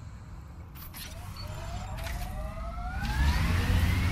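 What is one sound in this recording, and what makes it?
A vehicle engine revs up with a rising whine.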